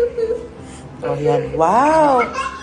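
A young child cries out nearby.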